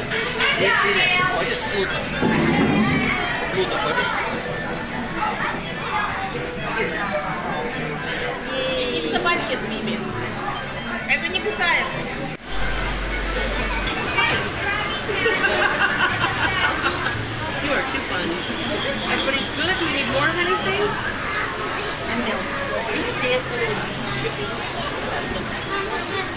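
A crowd murmurs in a busy room.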